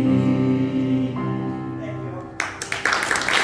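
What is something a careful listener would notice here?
A piano plays sustained chords.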